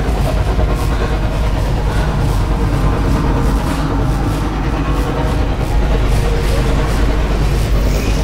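Electricity crackles and sizzles in sharp bursts.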